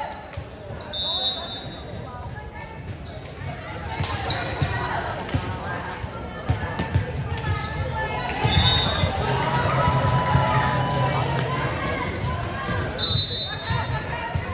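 Sneakers squeak sharply on the gym floor.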